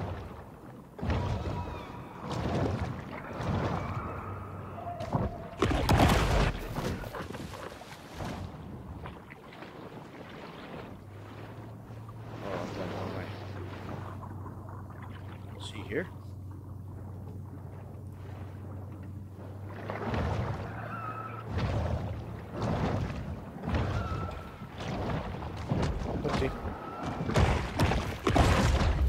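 Water swirls and rushes underwater as a large fish swims.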